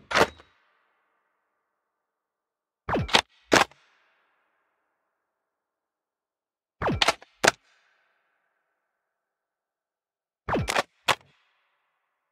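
A gun is cocked with sharp metallic clicks, several times.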